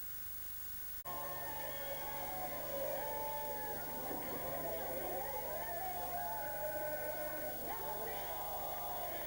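A large crowd of young men and women sings and cheers loudly in an echoing hall.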